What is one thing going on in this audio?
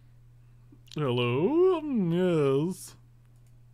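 A man sings a short wavering tune close to a microphone.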